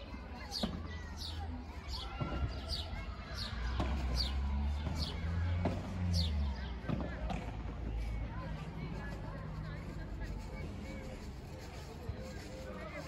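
Padel rackets hit a ball back and forth with sharp pops.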